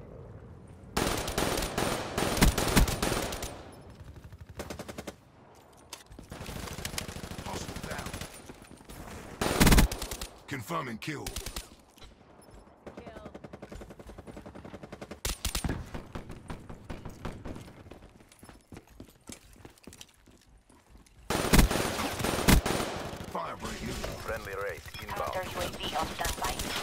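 Gunfire bursts in rapid loud volleys.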